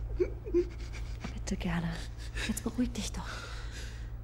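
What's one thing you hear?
A young woman sobs and whimpers close by.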